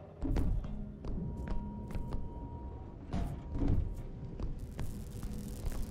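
Footsteps clatter quickly on metal walkways.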